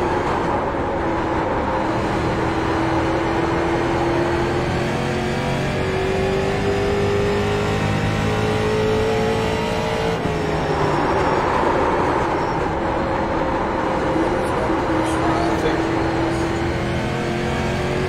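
A race car engine roars steadily, rising in pitch as it speeds up and dropping as it slows into a turn.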